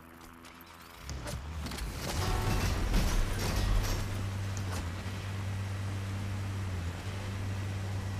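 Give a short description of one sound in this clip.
A vehicle engine starts and rumbles steadily as it drives over rough ground.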